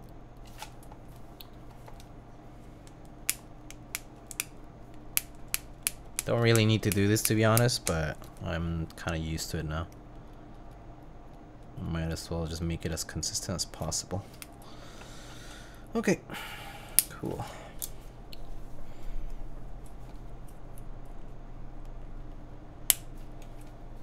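Keys clack on a keyboard as fingers type.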